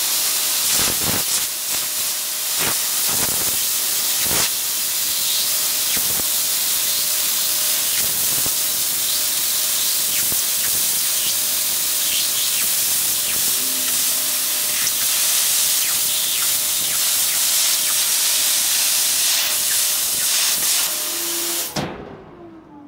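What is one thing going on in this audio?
A plasma torch hisses loudly and steadily as it cuts through sheet metal, then cuts off.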